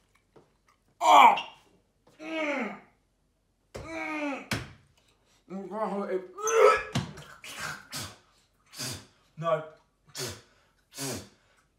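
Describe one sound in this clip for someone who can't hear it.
A young man speaks with animation close by, in bursts.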